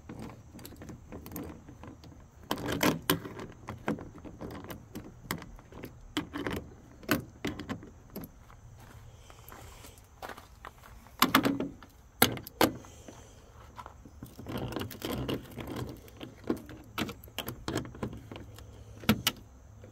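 A ratchet wrench clicks in quick bursts as it turns a bolt.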